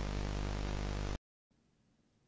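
Television static hisses loudly and then cuts off.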